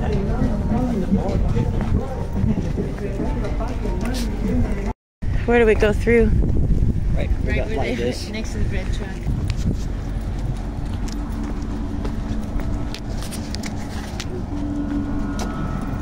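Footsteps scuff on pavement.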